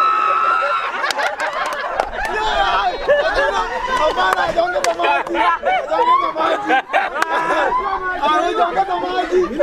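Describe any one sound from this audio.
A crowd of young people cheers loudly.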